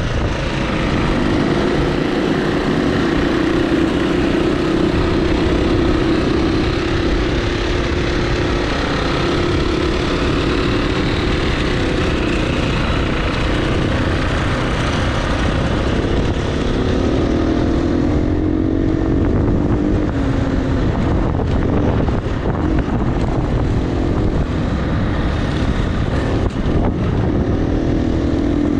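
A dirt bike engine revs loudly up close.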